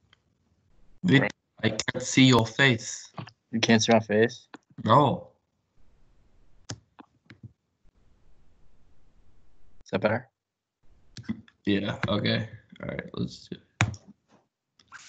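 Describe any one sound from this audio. A young man talks casually and laughs over an online call.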